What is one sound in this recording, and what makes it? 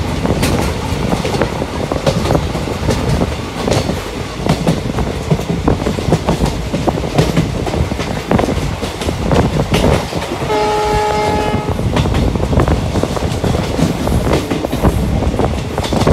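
Wind rushes loudly past an open train window.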